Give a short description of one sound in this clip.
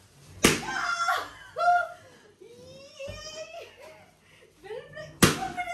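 A young woman squeals and laughs excitedly close by.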